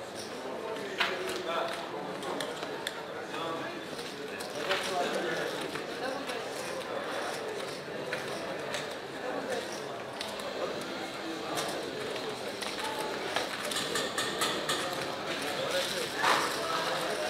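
Casino chips clack together as they are stacked and placed on a table.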